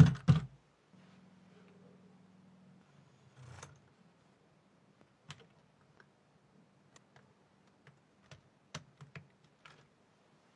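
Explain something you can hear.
Plastic toy parts click and snap as hands fit them together.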